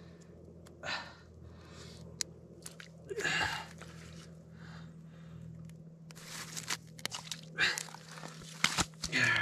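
Hands handle a wet fish tangled in a gillnet at a hole in the ice.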